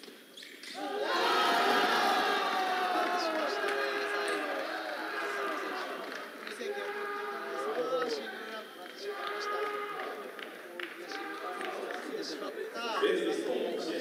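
A crowd of spectators murmurs in a large echoing hall.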